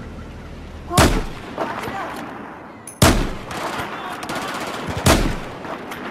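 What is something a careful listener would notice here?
A scoped rifle fires single shots.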